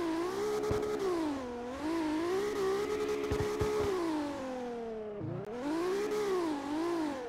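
A race car engine revs high and wavers as the car drifts.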